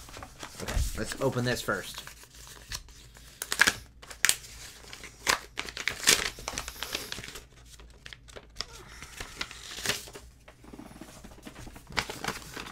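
Paper rustles and crinkles as it is unfolded.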